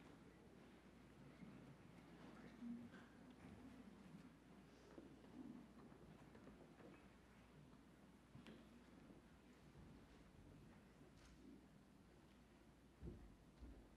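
People in a congregation murmur and shuffle quietly in a large echoing hall.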